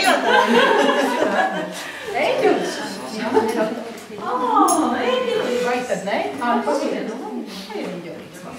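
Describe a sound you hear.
A woman sings nearby in a room with a slight echo.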